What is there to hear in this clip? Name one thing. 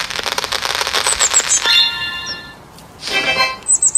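Balloons pop in quick succession.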